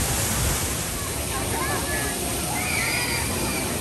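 Water splashes down a waterfall.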